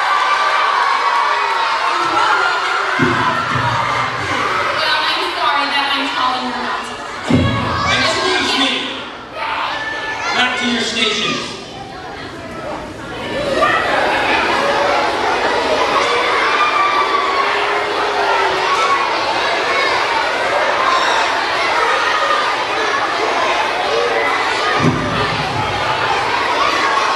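Young performers speak on a stage, heard from across a hall.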